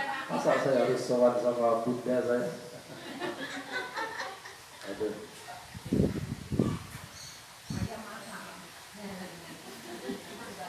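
A man speaks at a distance through a microphone and loudspeaker in an open, echoing space.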